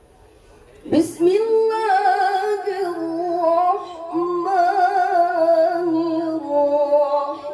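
A young woman sings loudly through a microphone and loudspeakers, outdoors.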